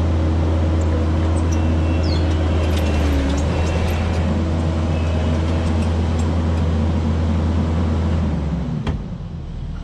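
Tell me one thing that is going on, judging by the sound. A diesel engine rumbles steadily close by, then shuts off.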